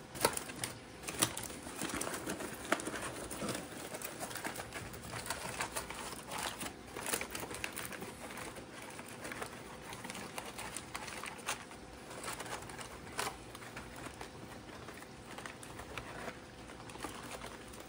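Foil crinkles and rustles as it is folded by hand.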